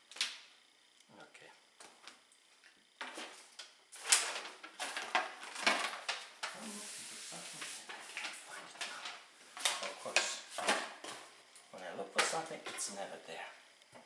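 Cardboard scrapes and knocks as a box is handled.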